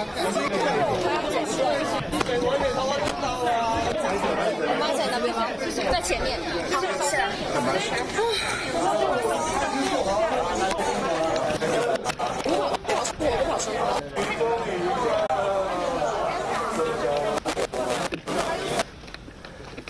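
A crowd of men and women talk and shout all at once, close by.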